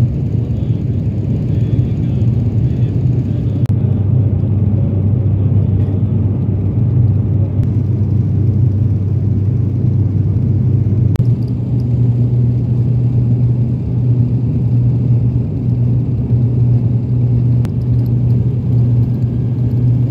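A jet engine drones steadily and loudly from inside an aircraft cabin.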